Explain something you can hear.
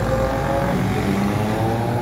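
A bus engine rumbles in street traffic.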